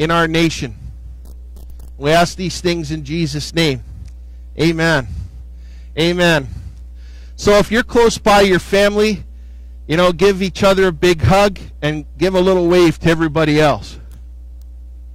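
A man speaks with animation into a microphone outdoors.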